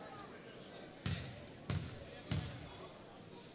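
A basketball bounces on a hard wooden floor in an echoing gym.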